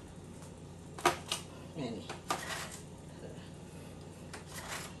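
A metal spoon scoops and scrapes in a foil pan.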